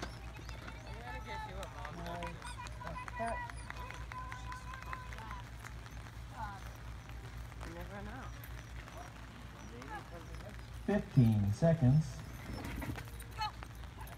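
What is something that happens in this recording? A woman calls out to a dog with excitement outdoors.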